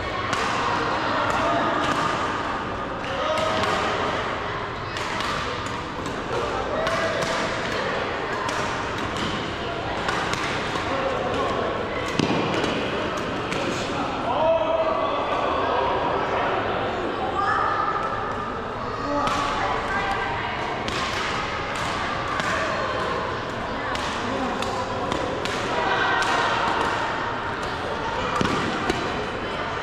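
Young people talk and call out in a large echoing hall.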